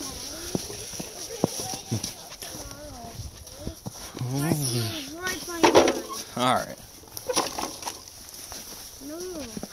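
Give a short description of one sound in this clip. A young child talks and babbles excitedly nearby.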